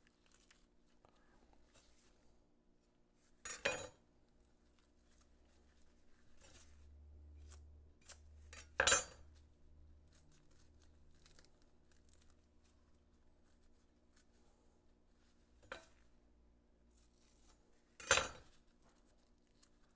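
Papery onion skin crackles as it is peeled.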